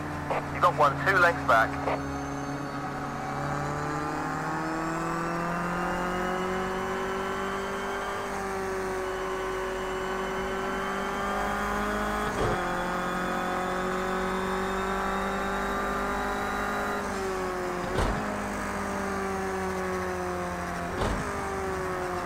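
A race car engine roars at high revs, climbing in pitch and dropping briefly at each gear change.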